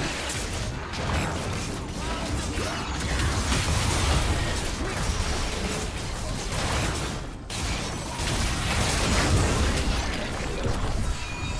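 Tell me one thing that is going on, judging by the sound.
Magic spells blast and crackle during a fight in a video game.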